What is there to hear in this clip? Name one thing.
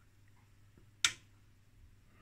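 A switch on a device clicks once.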